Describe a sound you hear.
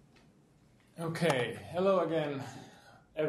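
A man speaks calmly to a room, heard through a microphone with slight echo.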